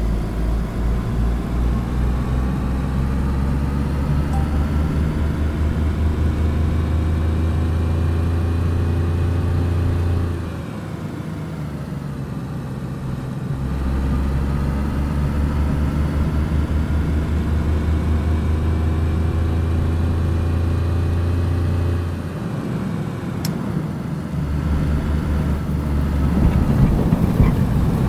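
A car engine revs up and down as the car drives along a road.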